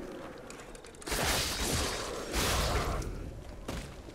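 Weapons swing and strike in a brief fight.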